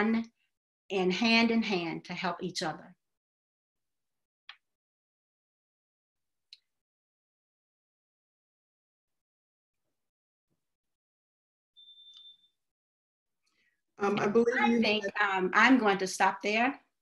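A woman speaks calmly through a microphone on an online call, with pauses.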